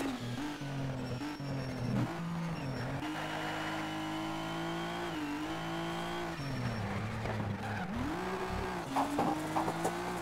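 A racing car engine roars loudly, revving up and dropping with each gear change.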